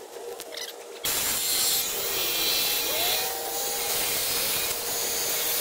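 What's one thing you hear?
A power saw whines loudly as it cuts through wood.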